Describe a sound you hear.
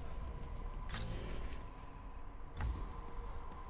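A short electronic click sounds as a game menu opens and closes.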